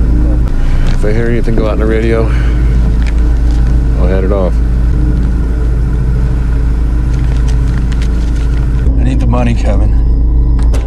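A man speaks quietly and tensely nearby.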